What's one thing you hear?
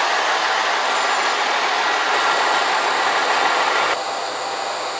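A passenger train rolls past close by.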